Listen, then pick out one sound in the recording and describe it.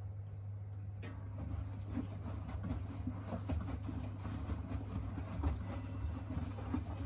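Laundry tumbles and thumps inside a washing machine drum.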